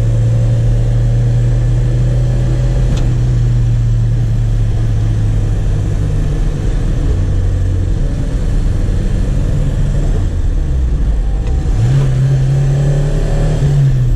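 A car engine hums steadily and changes pitch as the car shifts gears.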